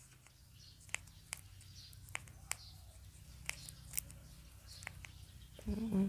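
Small sharp clicks sound close by.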